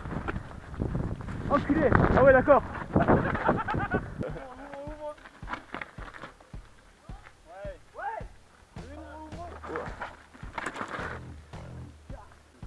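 Bicycle tyres rattle and crunch over a rocky trail.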